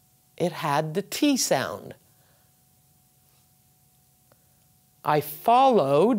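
A woman speaks clearly and slowly into a close microphone, reading out short sentences.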